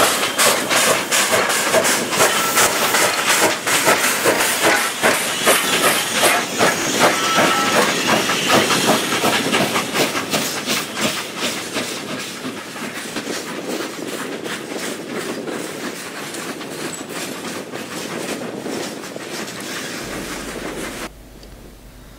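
A steam locomotive chuffs steadily as it hauls a train.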